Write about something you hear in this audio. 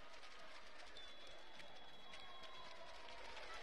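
A referee blows a long, steady whistle.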